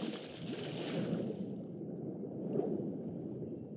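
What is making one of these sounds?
Water gurgles and rumbles, muffled underwater.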